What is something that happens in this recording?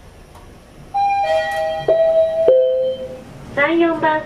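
An elevator chime sounds in steady tones.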